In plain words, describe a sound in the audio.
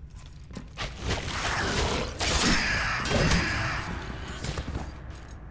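Blades clash and strike hard in a fight.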